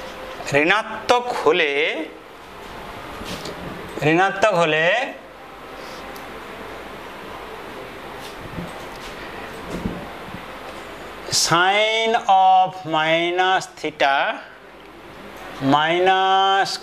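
A man speaks in a lecturing tone, in short bursts with pauses.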